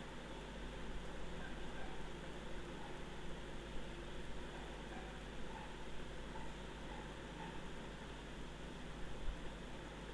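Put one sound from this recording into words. Fresh herb leaves rustle softly as a hand picks through them.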